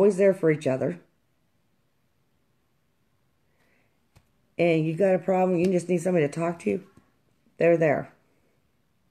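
A middle-aged woman speaks calmly and close to a microphone, in short bursts with pauses.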